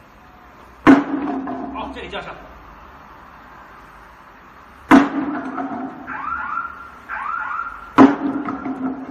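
A sledgehammer slams down on a bamboo pallet.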